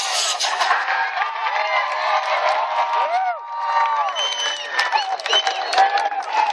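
A large crowd cheers and screams loudly outdoors.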